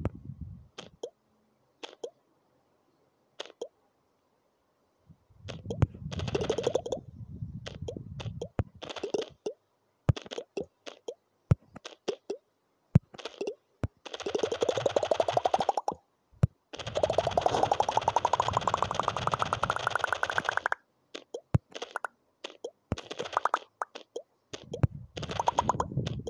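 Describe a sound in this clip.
A game ball bounces with quick tapping clicks.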